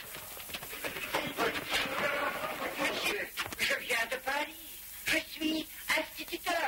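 An elderly man speaks excitedly.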